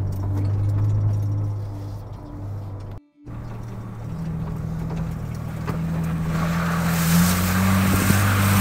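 A twin-turbo V6 SUV engine drones, heard from inside the cabin while driving.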